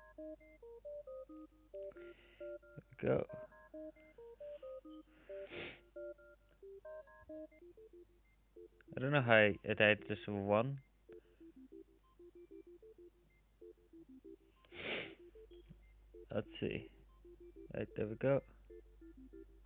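A simple electronic game melody plays in short beeping notes.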